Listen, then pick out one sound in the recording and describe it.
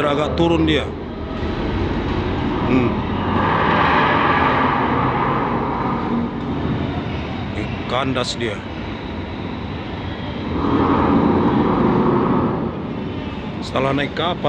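A low machinery hum drones steadily through a large echoing hall.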